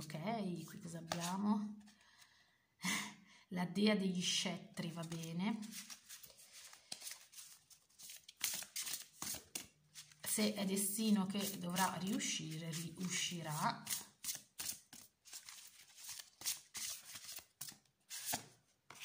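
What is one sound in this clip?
Cards shuffle and slap together with quick soft clicks.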